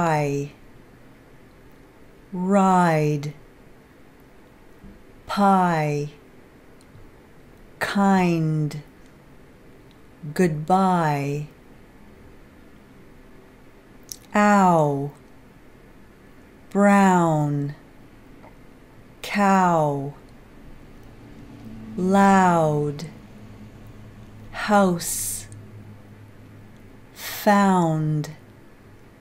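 A woman says single words slowly and clearly into a close microphone, one at a time with pauses between.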